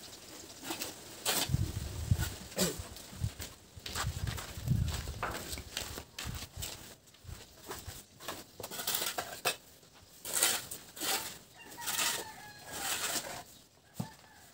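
Gravel and stones crunch and clatter as men work outdoors.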